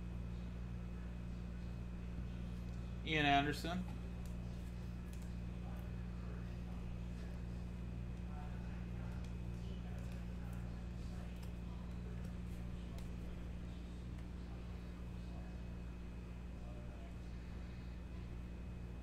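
Trading cards slide and flick against each other in hands.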